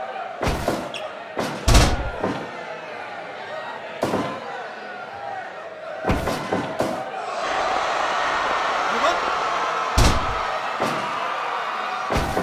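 Heavy bodies thud and slam onto a wrestling ring mat.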